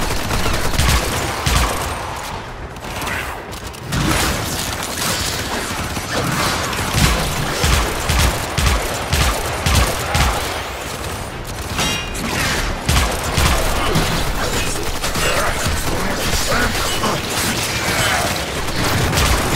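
Bullets and blades strike with sharp impacts.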